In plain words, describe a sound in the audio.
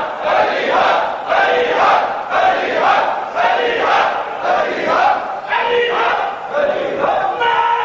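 A man recites loudly and with emotion through a microphone.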